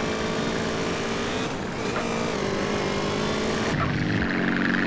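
A motorbike engine revs and hums.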